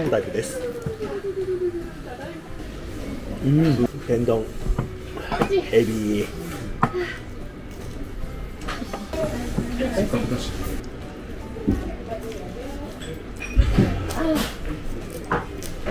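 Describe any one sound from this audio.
A man chews and smacks his lips.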